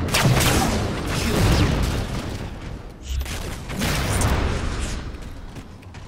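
Loud blasts of weapon fire boom and echo.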